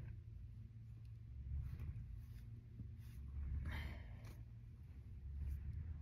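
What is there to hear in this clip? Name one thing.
A paintbrush brushes softly across a plastic sheet.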